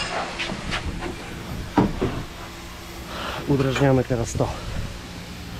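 Metal tools clank against a metal frame.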